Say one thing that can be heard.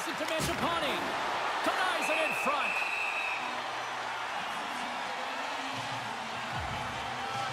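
A large arena crowd murmurs and cheers.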